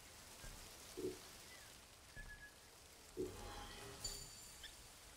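Soft interface clicks sound as menu options are picked.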